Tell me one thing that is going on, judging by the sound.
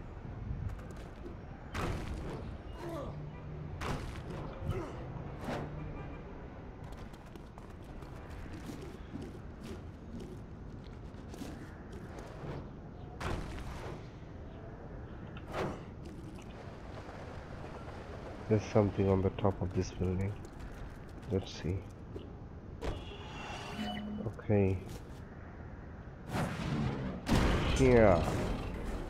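Heavy thuds and crashes of a body landing on concrete.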